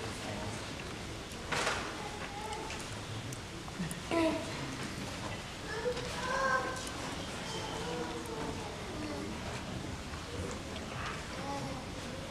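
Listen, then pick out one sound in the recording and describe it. A young boy speaks through a microphone.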